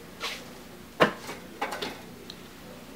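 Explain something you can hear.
Wooden shutter slats clack as a hand moves them.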